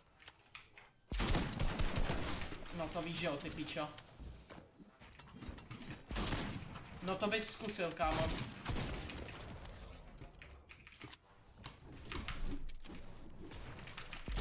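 Gunshots crack from a game.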